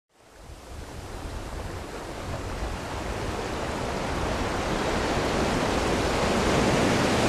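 Waves crash and surge against rocks, steadily growing louder.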